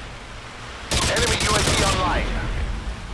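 Rapid gunshots ring out loudly.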